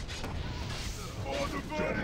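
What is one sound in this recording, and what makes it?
A magic blast bursts with a crackling whoosh.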